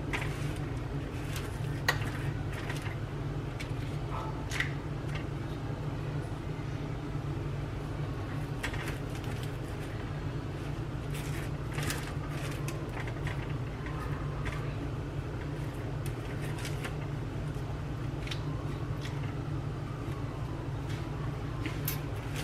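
A metal scoop scrapes and clicks against cooked squash and a bowl.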